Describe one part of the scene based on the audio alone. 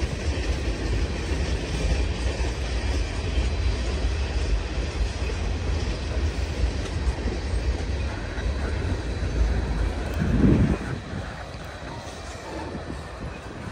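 Freight tank cars rumble and clatter along the rails.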